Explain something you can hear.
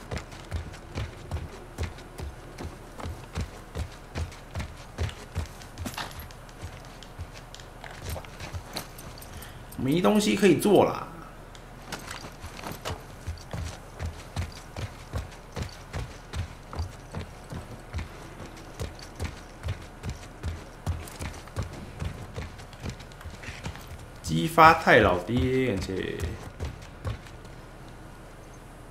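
Footsteps thud in a steady rhythm.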